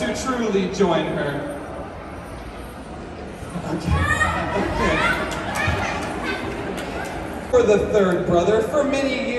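A man speaks with animation through a microphone over loudspeakers in a large echoing hall.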